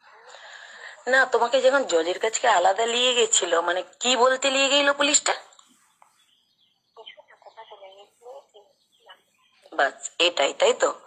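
A woman speaks close by with attitude.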